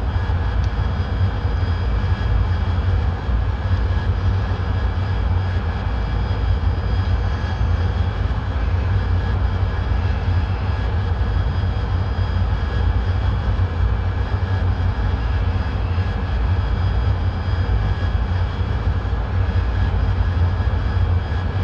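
A jet engine roars with a steady, deep drone.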